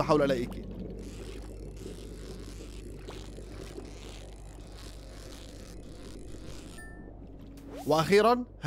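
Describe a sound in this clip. A fishing reel whirs and clicks steadily.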